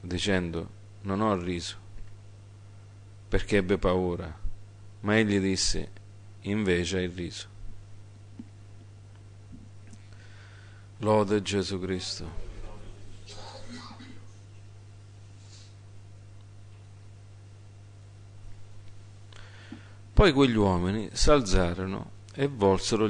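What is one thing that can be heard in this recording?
A middle-aged man reads aloud slowly into a microphone, with long pauses.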